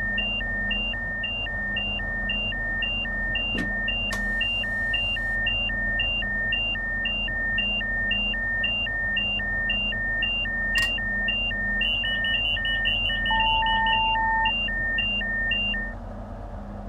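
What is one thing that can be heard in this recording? A train engine hums low and steadily.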